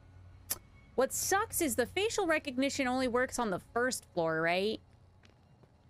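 A young woman talks with animation into a close microphone.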